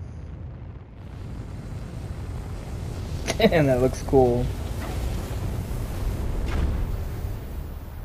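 Thrusters hiss loudly as a craft lands.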